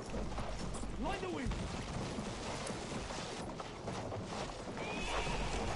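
A horse gallops, its hooves thudding on snow.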